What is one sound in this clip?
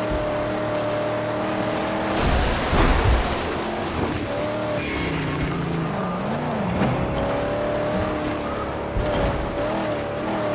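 Tyres crunch and skid over loose dirt.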